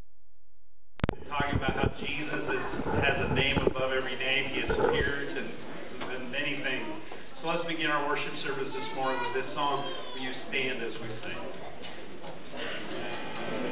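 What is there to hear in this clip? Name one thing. A man speaks with animation into a microphone, heard through loudspeakers in a large room.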